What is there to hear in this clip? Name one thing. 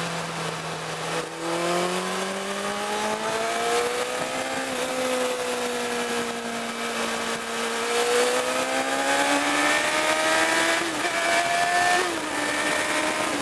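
A small car engine hums and revs up and down through the gears.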